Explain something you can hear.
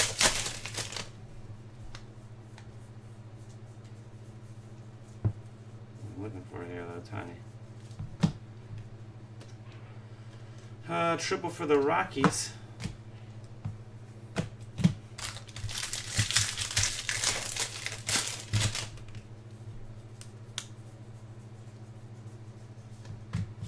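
Trading cards flick and slide against each other.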